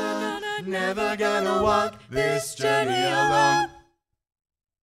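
Young men and women sing together in close harmony through microphones.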